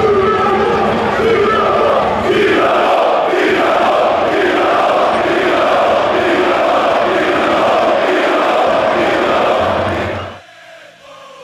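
A large stadium crowd chants loudly in unison.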